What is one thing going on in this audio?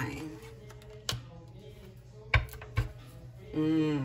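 A card slides and taps softly onto other cards.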